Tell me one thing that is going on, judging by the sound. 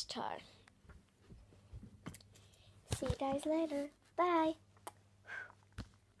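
A young girl talks in a high, lively voice close to the microphone.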